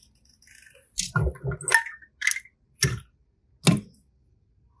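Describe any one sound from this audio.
Plastic toys click and knock together as a hand handles them.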